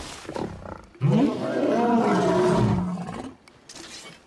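A large beast roars loudly and deeply.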